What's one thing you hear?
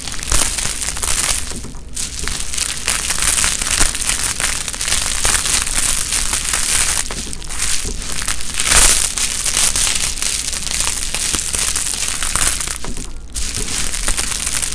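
A sheet peels slowly away from a sticky surface with a steady crackling rip.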